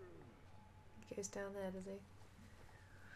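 A young woman speaks briefly and animatedly into a close microphone.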